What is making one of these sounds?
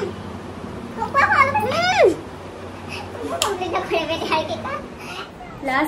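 Young women laugh together close by.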